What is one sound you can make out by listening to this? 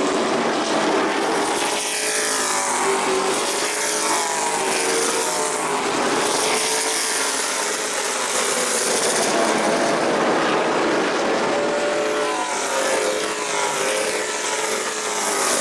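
Race car engines roar loudly as a pack of cars speeds by, rising and falling in pitch.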